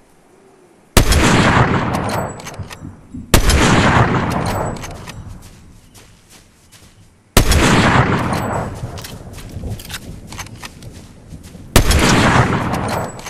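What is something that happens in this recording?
Loud rifle shots ring out one at a time, each with a long rolling echo.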